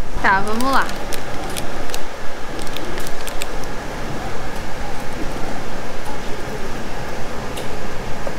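A young woman bites and chews crunchy food close by.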